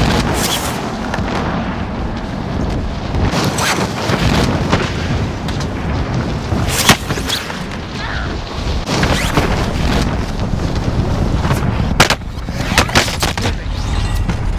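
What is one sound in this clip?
Wind rushes loudly and steadily past during a fall through the air.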